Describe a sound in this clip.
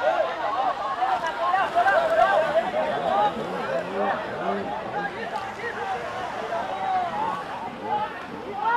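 A crowd of men shout and call out together outdoors.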